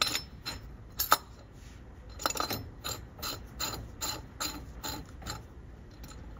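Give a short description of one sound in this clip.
A plastic filter cap clicks and scrapes as a hand twists it.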